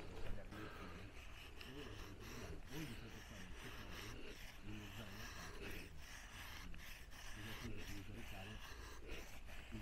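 A knife blade scrapes and shaves thin curls from a stick of wood.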